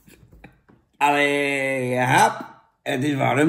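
A middle-aged man sings out a long, drawn-out exclamation.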